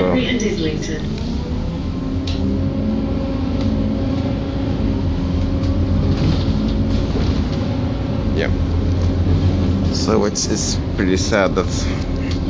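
A bus engine hums and rumbles steadily from inside the vehicle.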